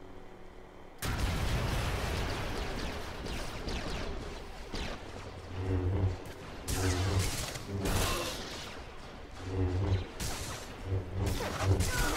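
Lightsaber blades clash and buzz in a fast fight.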